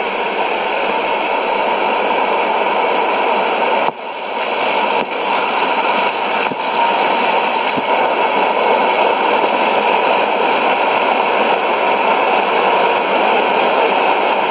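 Shortwave radio static hisses and crackles steadily from a small loudspeaker.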